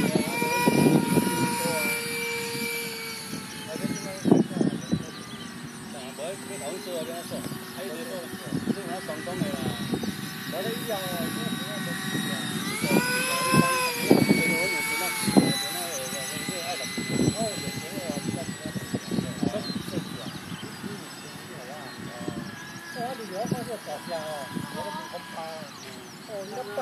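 A small jet engine whines overhead, its pitch rising and falling as it passes.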